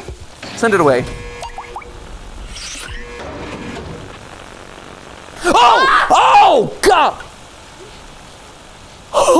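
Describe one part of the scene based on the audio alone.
Electronic game sounds chirp and warble in short bursts.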